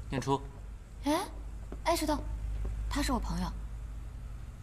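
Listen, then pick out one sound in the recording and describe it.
A young man calls out a name nearby.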